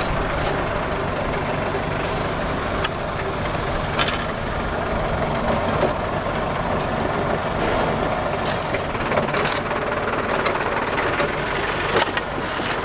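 Plastic sheeting rustles and crinkles as it is laid on the soil.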